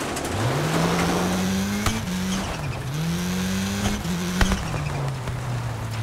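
A rally car engine revs up and down through gear changes.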